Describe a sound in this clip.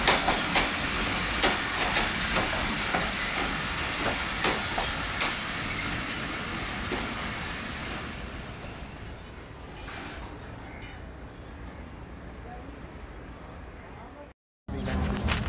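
A passing train's wheels clatter rhythmically over rail joints.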